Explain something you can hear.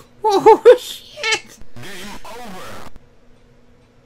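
An arcade game plays short electronic bleeps.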